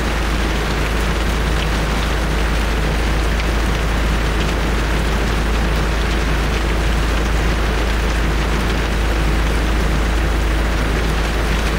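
Strong wind roars into the microphone.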